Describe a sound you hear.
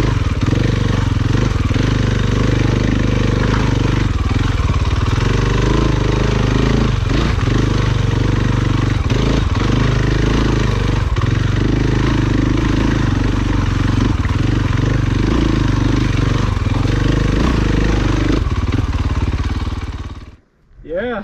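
Tyres crunch over rocks and dirt.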